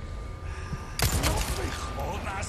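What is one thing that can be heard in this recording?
A pistol fires a loud shot that echoes.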